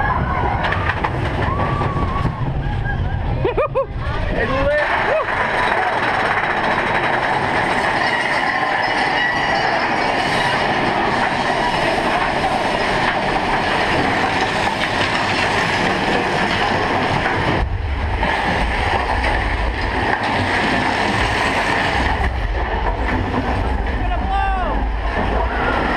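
A ride car rumbles and clatters loudly along its track.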